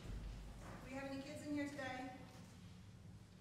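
A man speaks briefly into a microphone, heard in a large echoing room.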